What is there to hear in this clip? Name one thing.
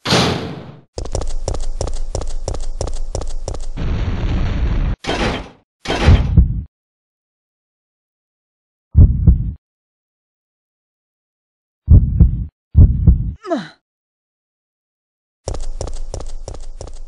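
Footsteps walk steadily across a concrete floor.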